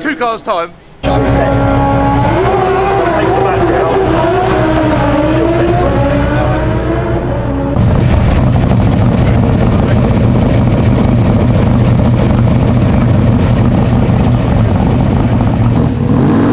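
A car engine runs loudly nearby.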